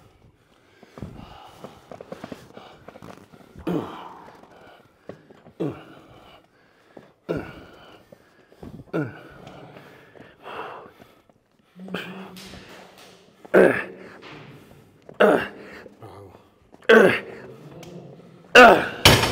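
A weight machine clanks with each repetition.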